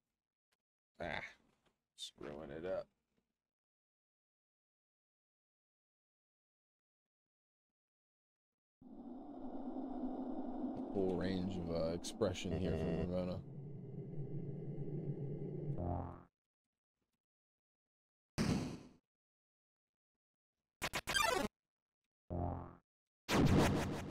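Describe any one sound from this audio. A man talks into a headset microphone in short bursts.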